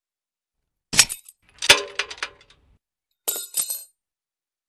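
Bolt cutters snap through a metal lock with a sharp clank.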